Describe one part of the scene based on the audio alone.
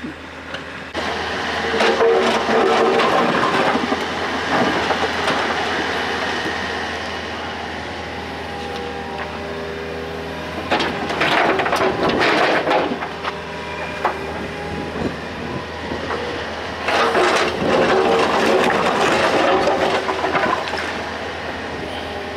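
Rubble and stones clatter and crash as an excavator bucket scoops them.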